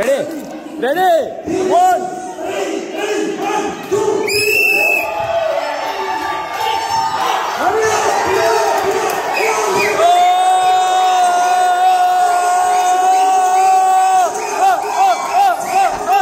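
A group of young men shout and chant together with excitement in an echoing hall.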